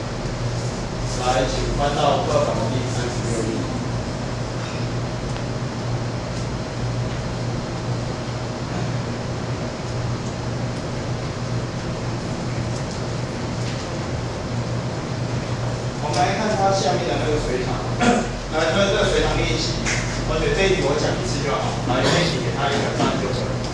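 A young man lectures calmly through a microphone.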